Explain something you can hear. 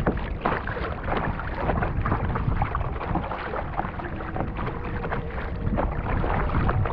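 A paddle splashes rhythmically in the water.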